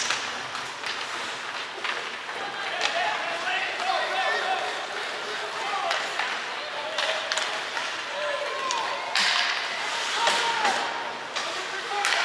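Ice skates scrape and hiss across ice in a large echoing arena.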